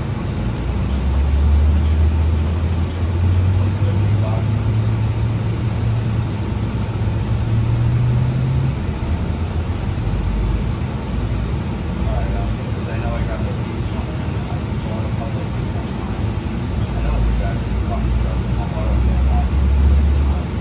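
Tyres rumble on the road beneath a moving bus.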